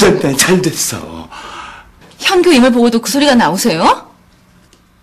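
A woman speaks anxiously close by.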